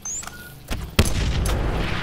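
A car explodes with a loud blast.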